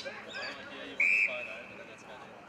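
An umpire blows a short, sharp whistle out on an open field.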